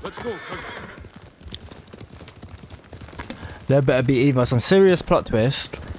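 A horse trots along a dirt path.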